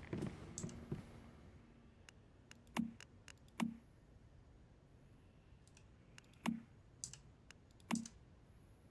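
Short soft clicks and thumps sound now and then from a game menu.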